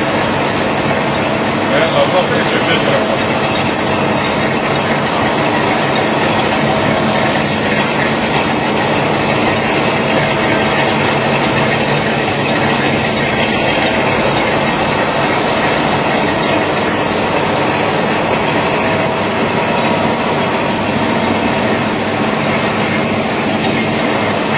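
Electric motors hum.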